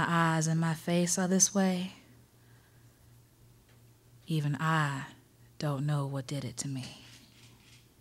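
A woman sings into a microphone in short phrases, with pauses between them.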